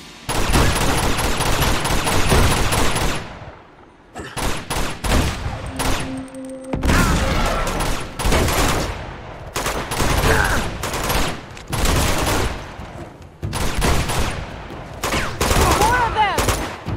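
Gunshots crackle in rapid bursts.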